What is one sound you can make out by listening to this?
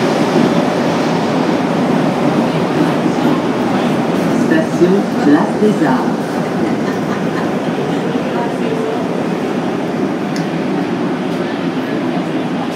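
A subway train rumbles steadily through a station, heard from inside the carriage.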